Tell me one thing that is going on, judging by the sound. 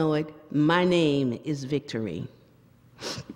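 A woman speaks with feeling into a microphone in an echoing room.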